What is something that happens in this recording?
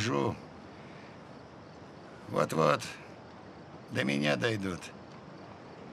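A man speaks in a low, tense voice, close by.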